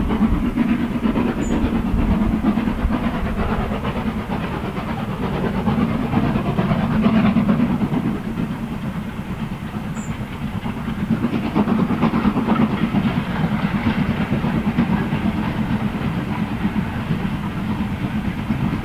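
A steam locomotive chuffs hard in the distance, its exhaust beats rising and falling.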